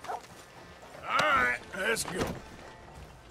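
A horse whinnies nearby.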